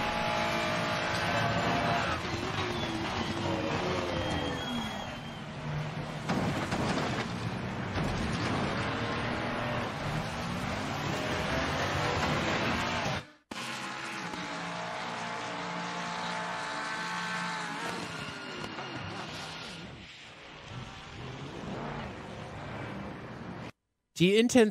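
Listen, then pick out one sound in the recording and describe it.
Racing car engines roar and whine as they change gear.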